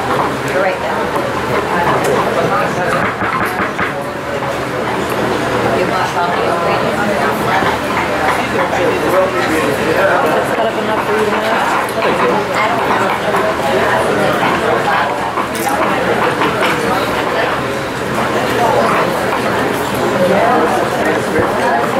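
Utensils clink and scrape against a stone bowl.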